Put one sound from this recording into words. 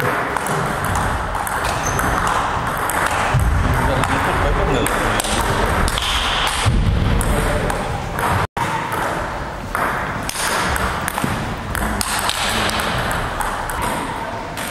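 A ping-pong ball clicks back and forth across a table.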